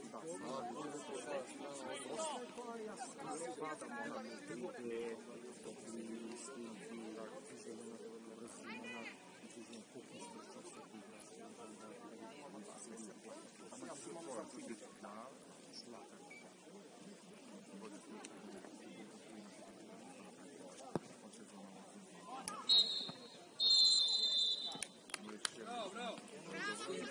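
Young men shout and call out to each other across an open field, heard from a distance.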